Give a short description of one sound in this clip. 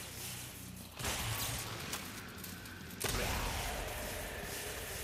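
A gun fires loud shots in a reverberant space.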